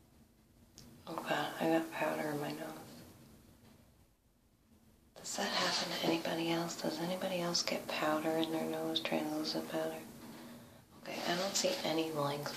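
A woman talks calmly close to a microphone.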